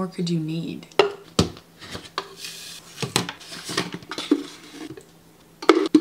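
Plastic tubs knock down onto a hard counter.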